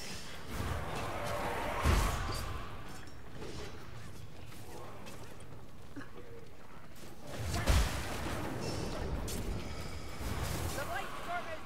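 A magic spell bursts with a rushing blast.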